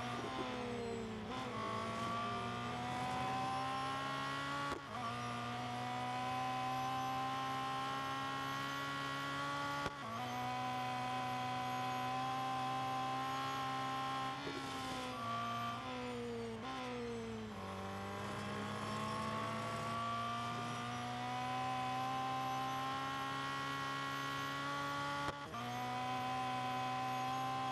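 A racing car engine roars loudly, rising in pitch through each gear and dropping sharply at each gear change.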